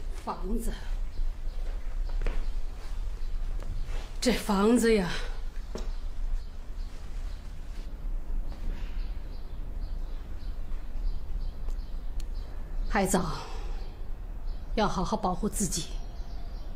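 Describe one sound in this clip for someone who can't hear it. An elderly woman speaks calmly and close by.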